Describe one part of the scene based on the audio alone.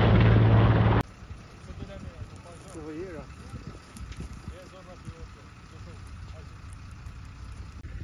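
Burnt wood crackles and hisses softly.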